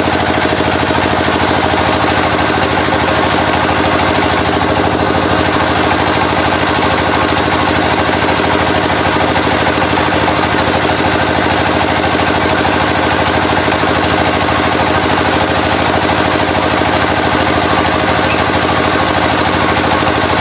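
A grinding machine whirs and rattles as grain pours through it.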